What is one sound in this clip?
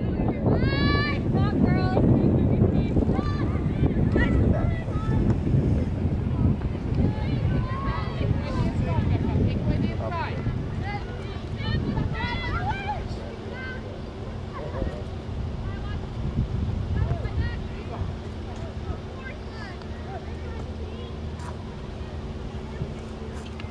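Young players shout and call out across an open field, some way off.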